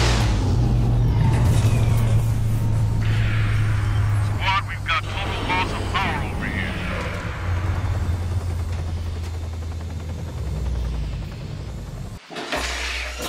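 A small drone hums and whirs steadily as it flies.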